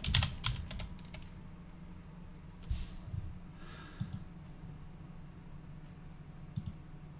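A young man speaks quietly close to a microphone.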